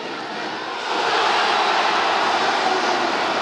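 A man shouts with excitement.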